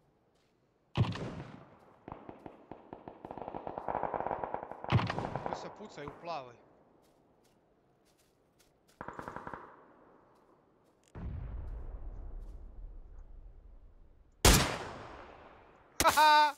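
A rifle fires sharp shots that echo away.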